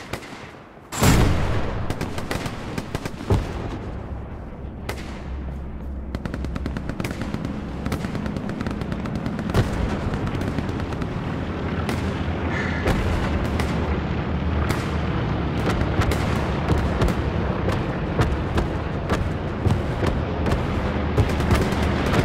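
Footsteps thud steadily on wooden stairs and on the ground.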